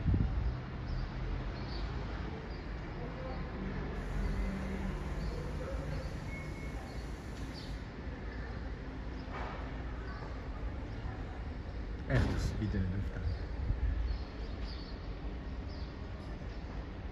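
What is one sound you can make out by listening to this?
Birds chirp faintly high overhead.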